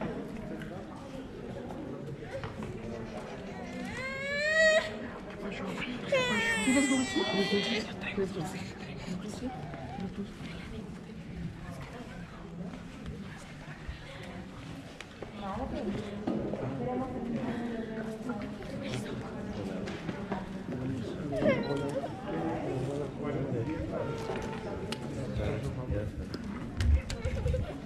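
A small crowd of men and women chat quietly in an echoing room.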